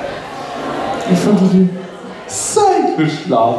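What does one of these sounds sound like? A young woman speaks with animation through a microphone in an echoing hall.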